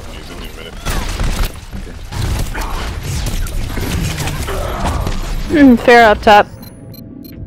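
Gunshots fire in rapid bursts from a game.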